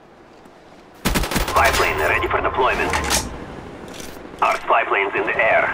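A rifle fires rapid bursts of loud gunshots.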